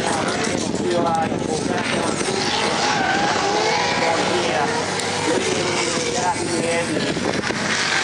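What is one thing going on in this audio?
Cars' engines roar and rev hard nearby.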